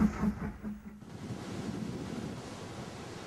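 Waves crash and wash against rocks on the shore.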